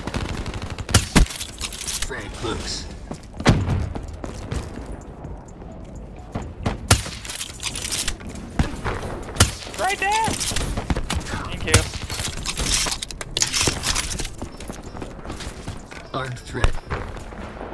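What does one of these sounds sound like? Sniper rifle shots fire loudly, one at a time, every few seconds.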